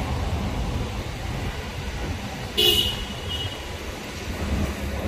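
Footsteps scuff slowly on concrete.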